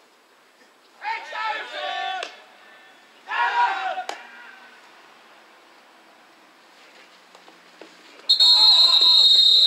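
Young men shout and cheer outdoors.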